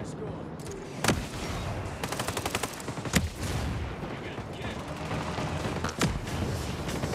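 Loud gunshots ring out, with a burst of rapid fire.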